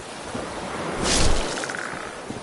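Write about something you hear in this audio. A blade strikes a creature with a heavy thud.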